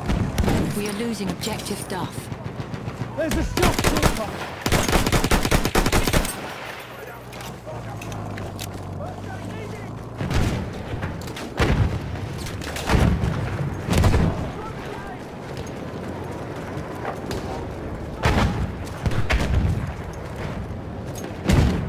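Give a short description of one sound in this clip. Gunshots crack in rapid bursts, loud and close.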